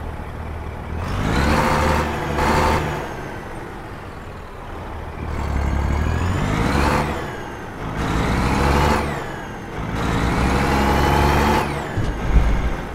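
A truck engine revs up again and again, rising in pitch as the gears change.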